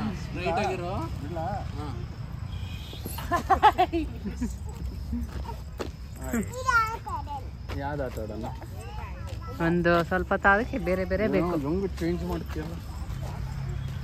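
A man talks playfully to a child nearby.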